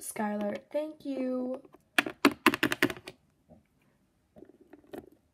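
Small plastic toys tap and scrape on a hard floor.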